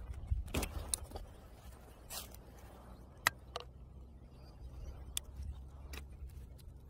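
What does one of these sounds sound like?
A gloved hand rustles against plastic and dry soil.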